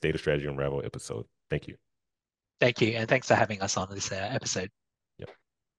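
A man speaks warmly into a microphone over an online call.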